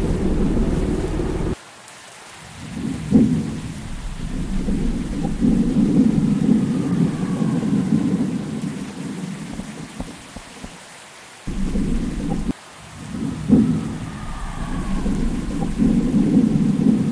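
Rain falls steadily with a low rushing sound.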